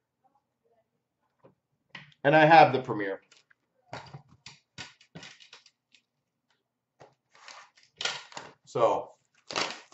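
Cardboard boxes rustle and tap as a hand handles them.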